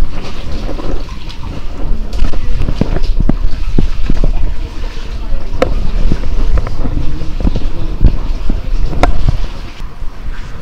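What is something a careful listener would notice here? Footsteps splash through shallow water in an echoing cave.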